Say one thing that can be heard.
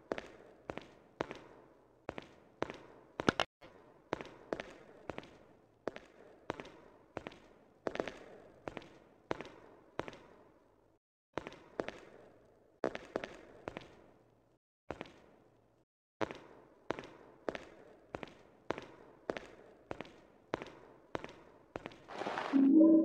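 Footsteps echo on a hard floor in a reverberant room.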